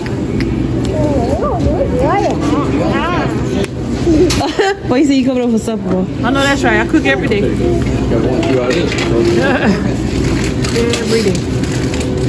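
A woman speaks close by in a calm, conversational voice.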